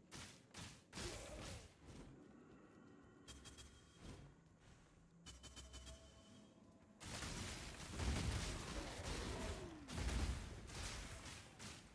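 Lightning spells crackle and zap in bursts.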